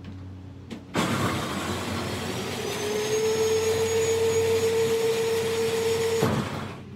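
A small electric motor whirs loudly, rising briefly in pitch and then holding steady before cutting off.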